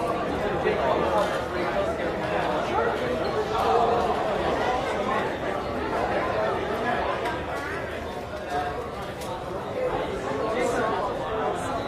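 A crowd of men and women chatters all around, close by, in an echoing room.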